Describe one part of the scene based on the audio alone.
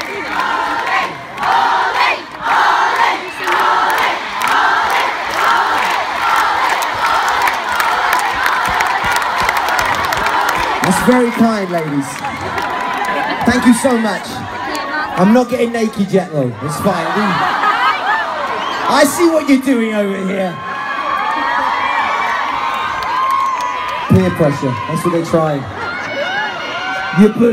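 A crowd cheers and sings along.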